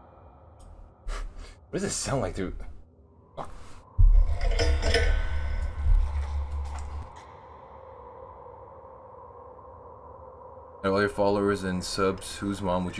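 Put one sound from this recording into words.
A young man talks close to the microphone in a low, casual voice.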